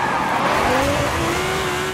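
Tyres skid and spray sand.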